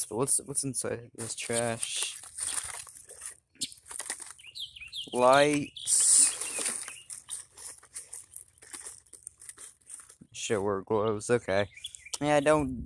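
Paper and cardboard rustle and crinkle as a hand digs through a bin.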